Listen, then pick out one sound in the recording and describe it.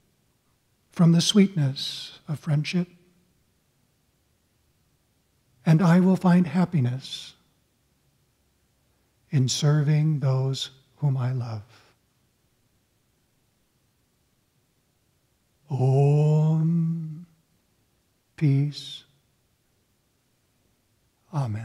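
An elderly man prays aloud slowly and calmly in short phrases, with long pauses between them.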